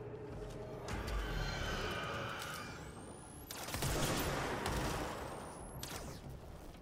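A gun fires in loud, quick bursts.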